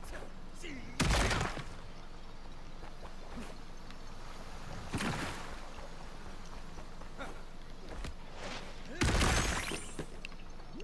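A heavy body slams down onto the ground with a loud thud.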